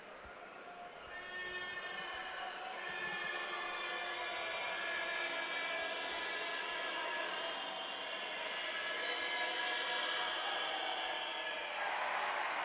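A large crowd chants and whistles loudly.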